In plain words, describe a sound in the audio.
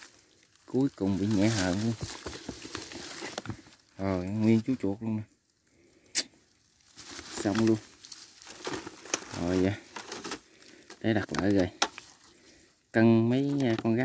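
A wire cage rattles and clinks.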